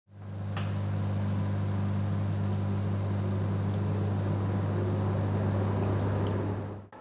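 A fan hums steadily with a low drone.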